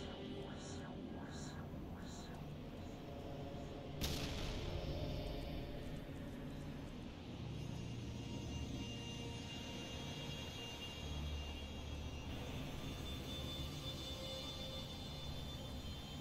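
A hovering robot whirs and hums.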